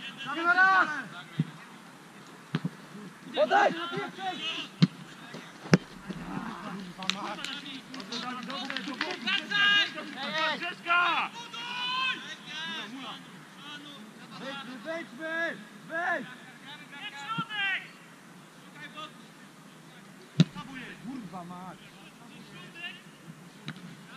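Men shout to each other across an open field outdoors.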